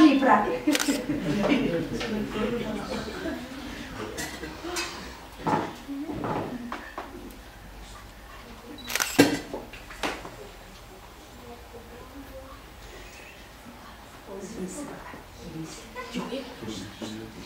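A woman speaks calmly to children nearby.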